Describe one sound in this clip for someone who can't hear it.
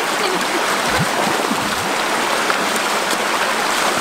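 Water splashes as people wade through a stream.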